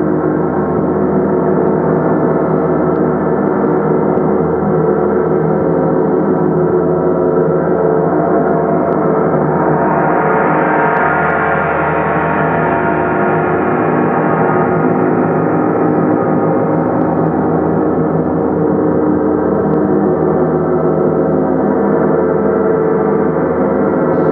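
A large gong is played with a soft mallet, producing a continuous, rich shimmering roar that swells and slowly subsides.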